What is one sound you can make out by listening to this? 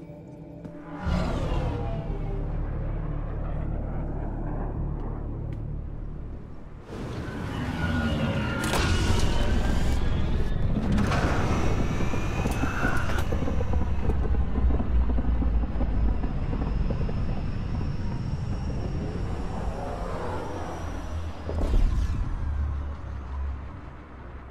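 A spacecraft's engines roar as it flies past.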